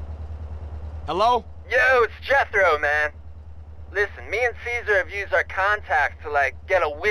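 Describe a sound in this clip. A young man speaks casually over a phone.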